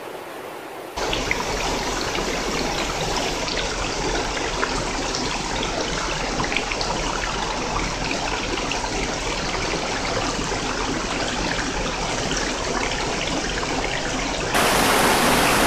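A small stream of water pours and gurgles down a rocky channel.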